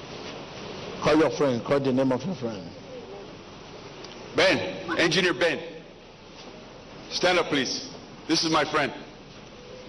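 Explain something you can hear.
A middle-aged man speaks calmly into a handheld microphone.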